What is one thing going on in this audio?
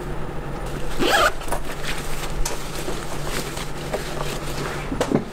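A fabric bag rustles as it is lifted and slung over a shoulder.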